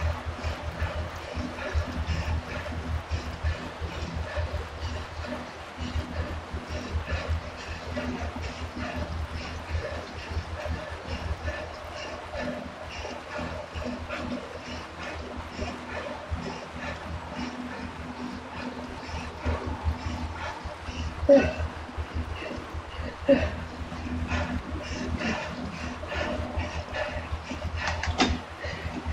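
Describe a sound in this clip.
An indoor bike trainer whirs steadily as pedals turn.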